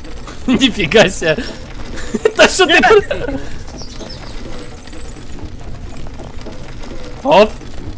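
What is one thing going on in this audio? A heavy chain drags and clanks along the ground.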